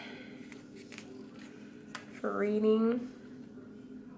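A finger presses and rubs a sticker onto a paper page.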